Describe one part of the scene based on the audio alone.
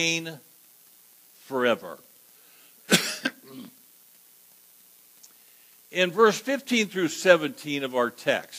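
A man preaches with emphasis into a microphone, with pauses between phrases.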